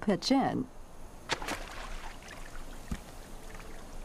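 A bird splashes into water.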